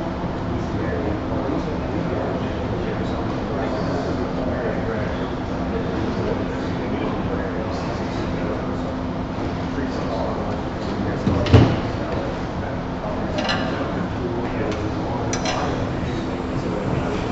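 A wood lathe hums steadily as it spins.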